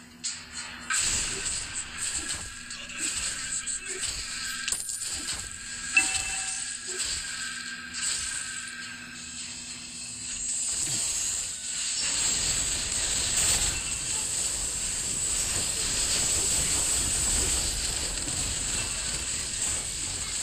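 Game sound effects of weapons and spells clash and burst.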